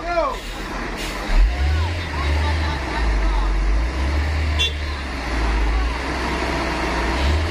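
A heavy truck engine rumbles and strains at a low pitch.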